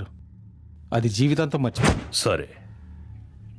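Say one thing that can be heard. A man speaks tensely into a phone.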